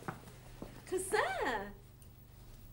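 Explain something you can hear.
A woman laughs, close by.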